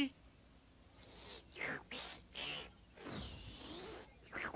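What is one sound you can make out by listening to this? A small vacuum machine whooshes and sucks in uneven bursts.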